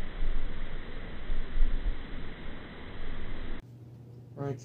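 Water bubbles and churns up from below the surface of a pool.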